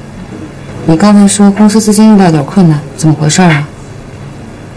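A young woman speaks with concern nearby.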